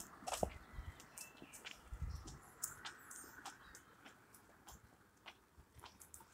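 Footsteps patter on a paved path outdoors.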